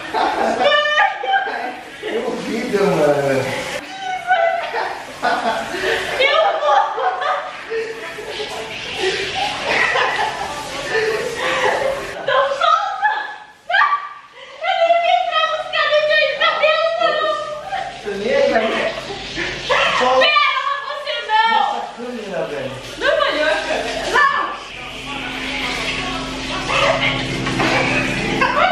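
A young woman talks and laughs cheerfully nearby.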